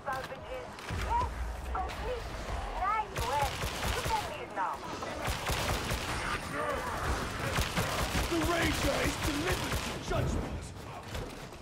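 Guns fire rapidly in loud bursts.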